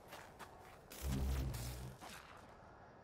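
A burst of energy whooshes and roars loudly.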